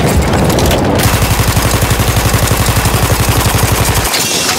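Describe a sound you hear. A machine gun fires in rapid, steady bursts.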